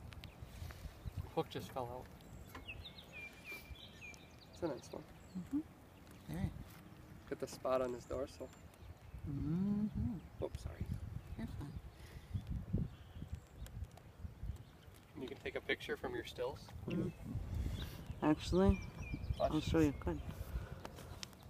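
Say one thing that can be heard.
A man talks casually close by, outdoors.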